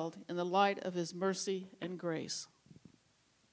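A middle-aged woman reads aloud into a microphone.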